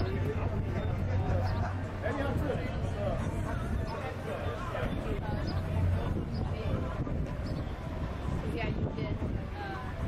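Many voices of men and women chatter nearby outdoors.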